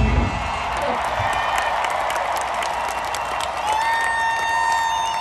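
A large crowd cheers and shouts.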